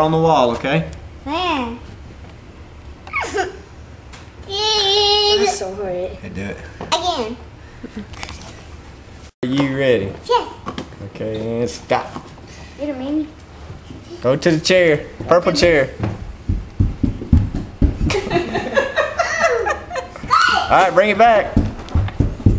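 A young boy squeals and laughs excitedly close by.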